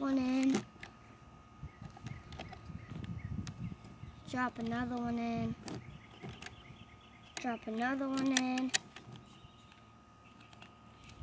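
Plastic toy parts click and rattle as they are handled.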